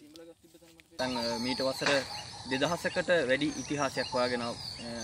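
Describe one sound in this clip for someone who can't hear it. A young man speaks clearly and steadily, close by.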